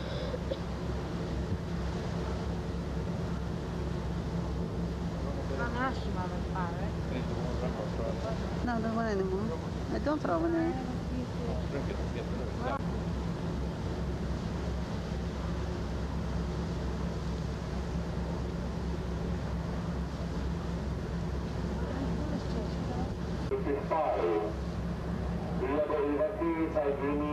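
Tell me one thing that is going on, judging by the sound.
Wind blows against the microphone.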